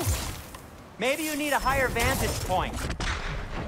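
A bowstring twangs as an arrow is loosed.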